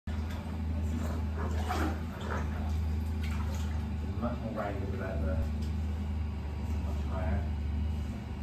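Water sloshes around a dog's legs as it walks.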